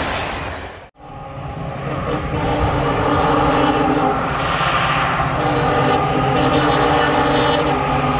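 An EMD diesel locomotive approaches under power, its engine throbbing.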